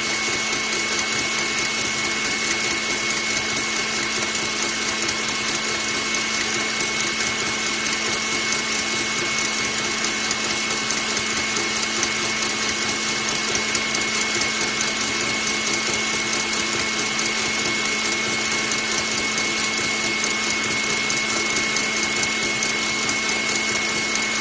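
An electric stand mixer whirs steadily as its whisk beats a batter.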